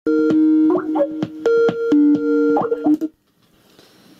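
A computer plays a ringing call tone.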